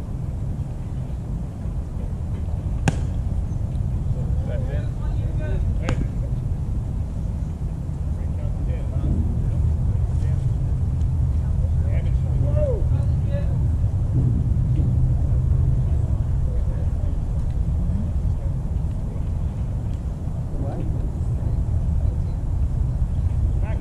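Wind rumbles steadily across an open field.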